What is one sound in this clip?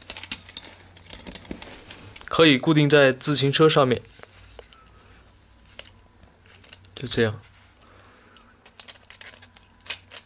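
Plastic parts click and rattle as a small mount is handled.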